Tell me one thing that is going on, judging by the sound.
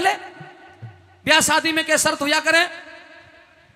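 A man speaks with animation into a microphone through loudspeakers.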